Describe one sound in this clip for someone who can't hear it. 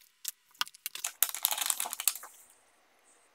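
A plastic film peels off with a crackling rustle.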